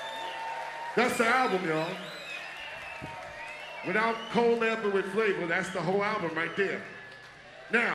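A man raps loudly and forcefully into a microphone.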